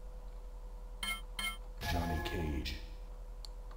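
A video game gives quick clicks and a short burst as a fighter is picked.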